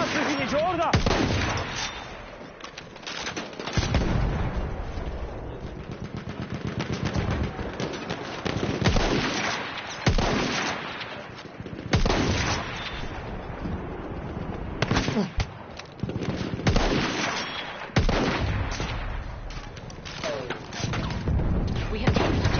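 Rifle shots crack loudly and echo.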